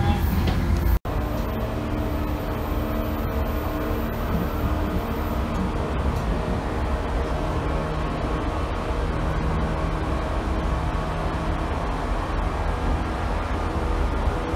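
A train's motor hums steadily while the carriage idles.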